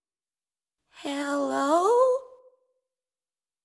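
A young boy exclaims in a high, rising voice.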